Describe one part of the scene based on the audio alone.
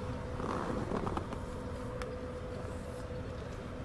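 Footsteps tread on stone.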